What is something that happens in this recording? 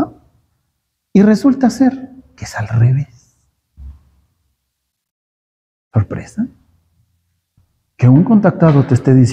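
A middle-aged man speaks calmly and clearly, close by, with pauses between phrases.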